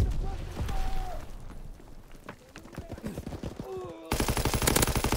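A man talks into a headset microphone with animation.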